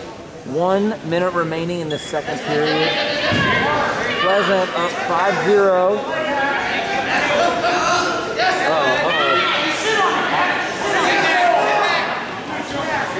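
A crowd of men and women shouts encouragement in a large echoing gym.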